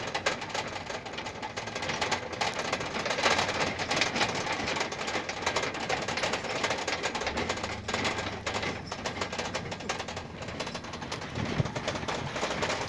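A truck's tyres roll over a rough dirt road.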